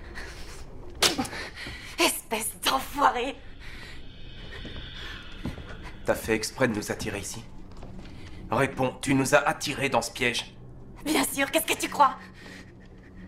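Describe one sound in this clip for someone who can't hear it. A young woman speaks tearfully, close by.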